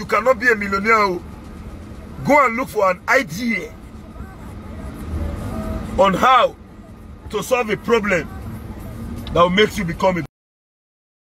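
A man talks animatedly and close up.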